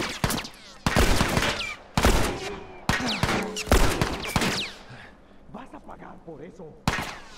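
Gunshots fire loudly in quick bursts, each one echoing.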